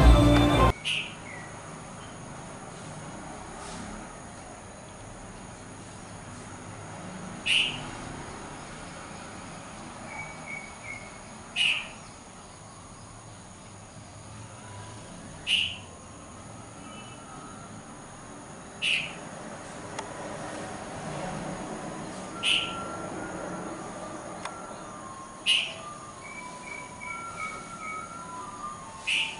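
A bird gives short, sharp chirps at regular intervals.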